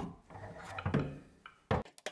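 A hammer taps on sheet metal.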